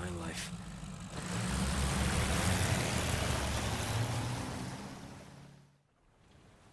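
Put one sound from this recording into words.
A boat engine drones as the boat moves over rough water.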